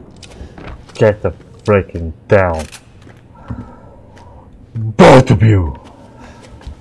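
A man speaks loudly and with animation close to a microphone.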